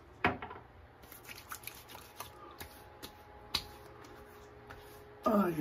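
Hands rub together and over skin with soft rustles.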